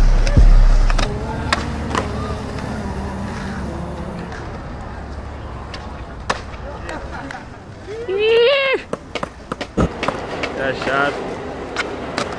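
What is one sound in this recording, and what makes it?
Skateboard wheels roll over concrete.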